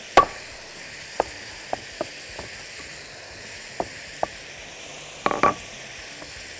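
Knocks and taps sound on a wooden board.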